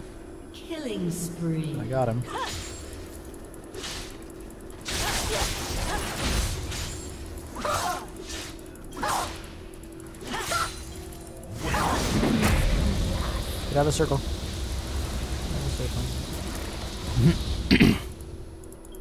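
Sword slashes and spell blasts clash in a game battle.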